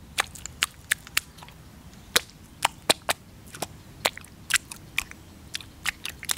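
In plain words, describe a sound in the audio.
Bare feet squelch and slap in wet mud.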